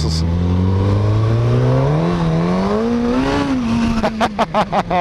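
A motorcycle engine hums close by, its pitch rising steadily as it speeds up.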